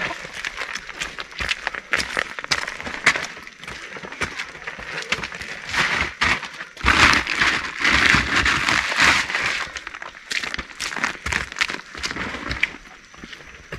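A plastic sack crinkles and rustles as it is carried.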